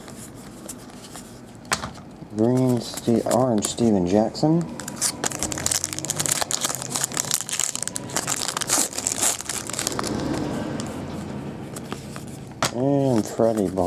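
Trading cards slide and shuffle in hands.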